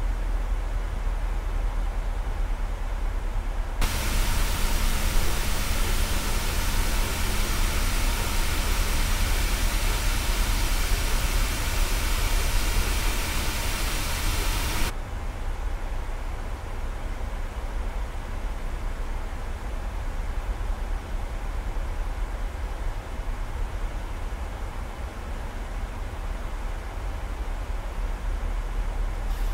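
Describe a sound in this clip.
Jet engines hum in a low, steady drone, muffled inside a cockpit.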